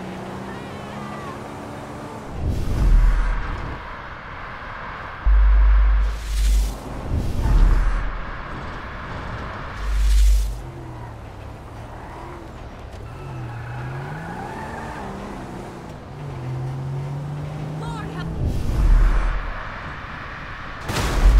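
A car engine hums and revs as the car drives along.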